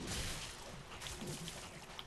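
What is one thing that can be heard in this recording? A sword swings and strikes in a fight.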